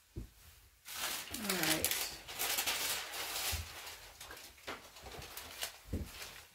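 Stiff paper rustles and crinkles close by.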